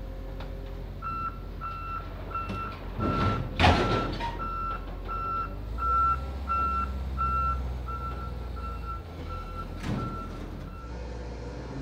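A forklift's reversing alarm beeps steadily.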